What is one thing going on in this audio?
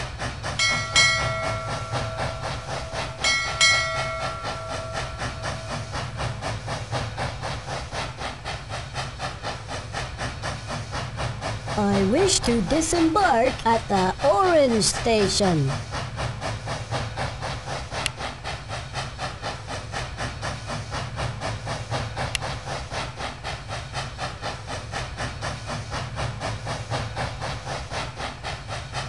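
A cartoon train engine chugs steadily along the tracks.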